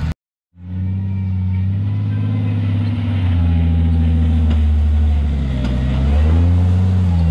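An off-road vehicle's engine rumbles and revs as it crawls up rocks.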